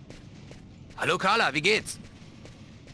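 A man calls out a friendly greeting.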